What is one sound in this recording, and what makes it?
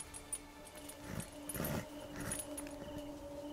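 Leather creaks and rustles as a rider climbs onto a horse.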